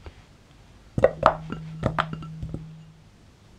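Butter cubes drop into a metal bowl with soft thuds and clinks.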